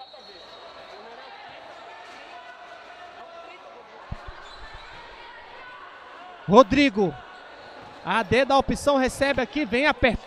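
A ball is kicked on a hard indoor court.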